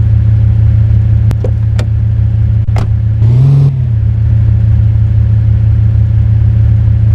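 A car engine hums steadily at low speed.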